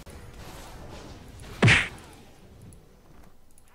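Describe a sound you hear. Game fight sound effects clash and burst.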